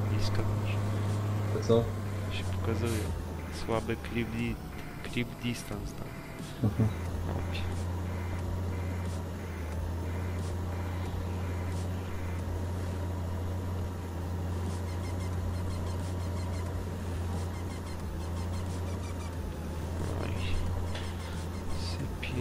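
A tractor engine hums steadily and low.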